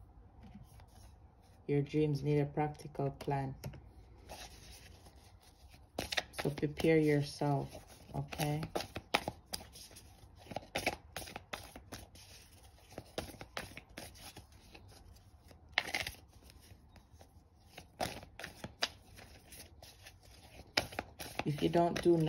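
Cards are shuffled and riffle softly in hands.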